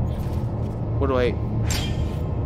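An energy effect whooshes and rises in pitch as a glowing figure lifts into the air.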